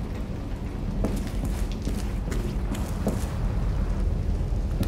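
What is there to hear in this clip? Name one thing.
Footsteps sound on a hard floor indoors.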